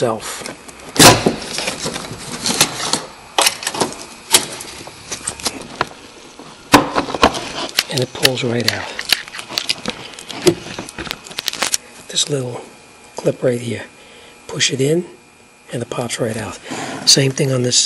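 Plastic parts click and rattle as wires are handled.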